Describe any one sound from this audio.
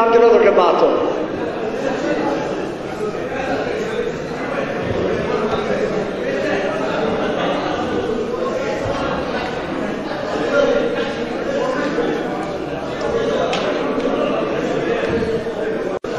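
A crowd of men talks and murmurs loudly in a room.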